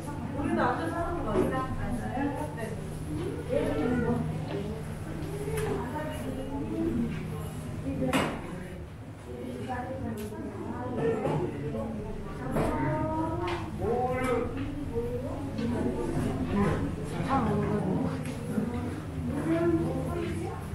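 A woman speaks into a microphone through a loudspeaker in an echoing room.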